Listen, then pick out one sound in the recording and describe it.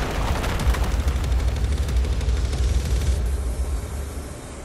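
Rock shatters with a deep rumbling crash.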